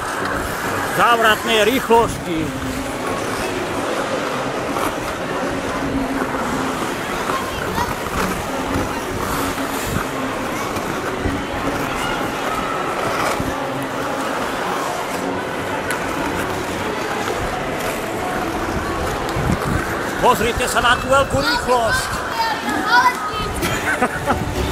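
A crowd of children chatters and shouts in a large echoing hall.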